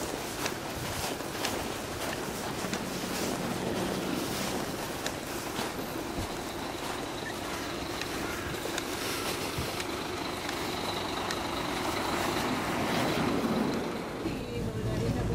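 Footsteps crunch on packed snow.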